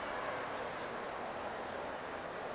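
A crowd of young fans cheers and shouts excitedly in a large stadium.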